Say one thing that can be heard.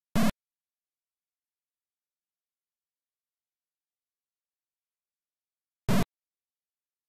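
A short electronic game sound effect buzzes twice.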